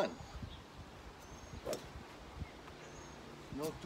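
A golf club swishes through the air.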